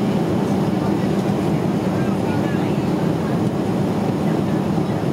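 A jet airliner's engines roar steadily inside the cabin.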